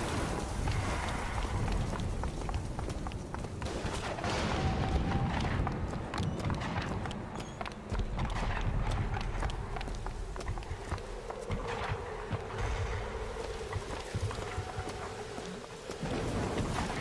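Footsteps tap on stone paving.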